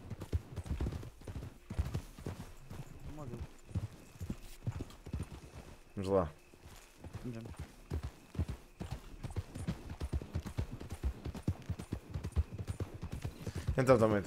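A horse's hooves thud at a gallop over the ground.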